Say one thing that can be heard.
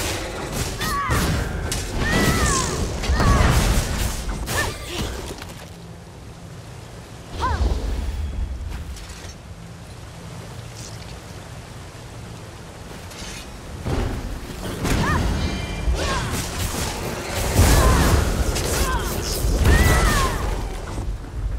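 A creature shrieks as it is struck.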